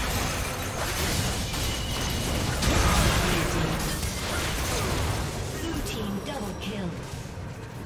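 Game spells blast and crackle in a hectic battle.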